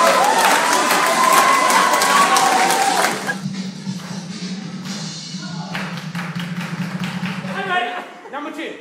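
A crowd of men and women chatter and cheer.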